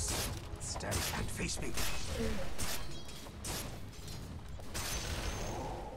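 Game combat effects clash and whoosh in quick bursts.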